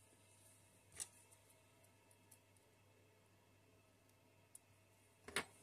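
Small metal tweezers click against a tiny part.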